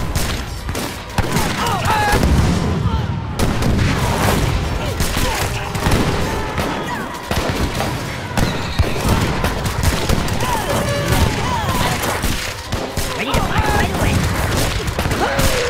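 Muskets crackle and bang in a busy battle.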